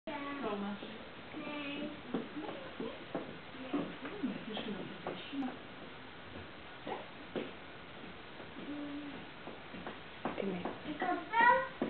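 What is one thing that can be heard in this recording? A woman speaks calmly to children.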